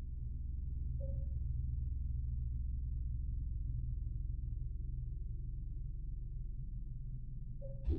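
A short soft electronic tone chimes.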